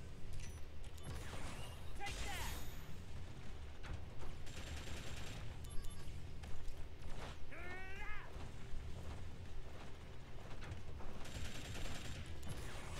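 A sword clangs against metal in quick strikes.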